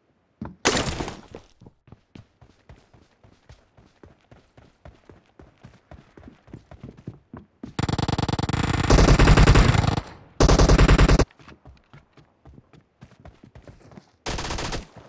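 Footsteps thud quickly and steadily.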